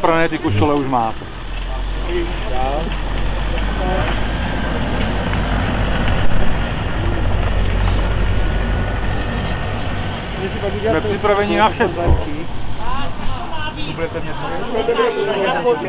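A man talks nearby, his voice slightly muffled.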